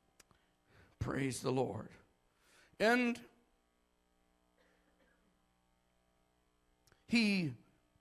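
A man preaches loudly and with fervour into a microphone, in short bursts with pauses, in a large echoing room.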